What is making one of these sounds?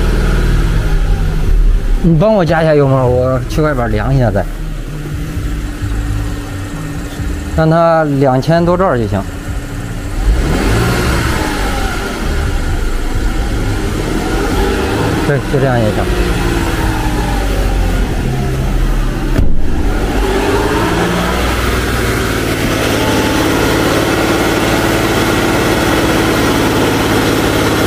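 A car engine runs steadily.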